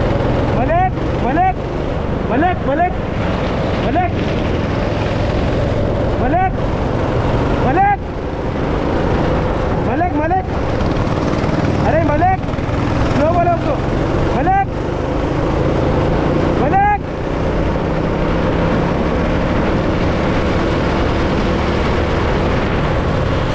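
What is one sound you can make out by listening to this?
A kart engine drones loudly and steadily, its pitch briefly swooping up and down.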